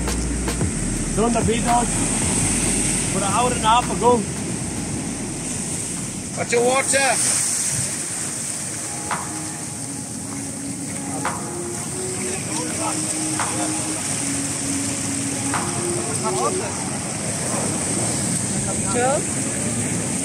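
Men shout to each other outdoors over the surf.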